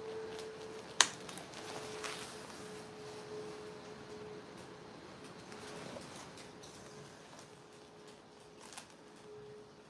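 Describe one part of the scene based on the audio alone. A plastic hanger and stiff fabric rustle and click as they are handled.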